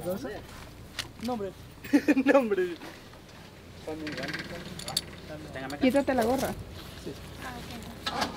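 Metal harness clips click and clink.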